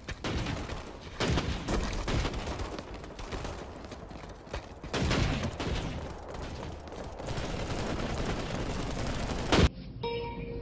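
Gunfire cracks in short bursts.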